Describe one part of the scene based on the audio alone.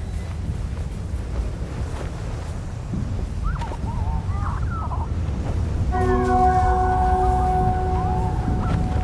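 Sand hisses softly as two figures slide down a dune.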